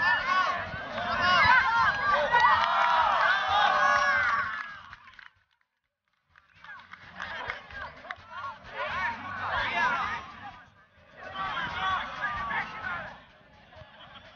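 A large crowd of men and women shouts and cheers loudly outdoors.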